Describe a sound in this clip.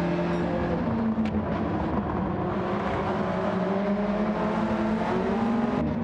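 Racing car engines roar steadily at high revs.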